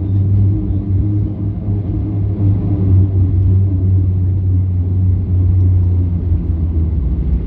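Jet engines rumble steadily as a plane taxis, heard from inside the cabin.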